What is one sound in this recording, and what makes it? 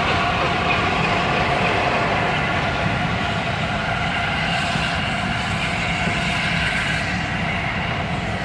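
A diesel train rumbles in the distance and slowly fades.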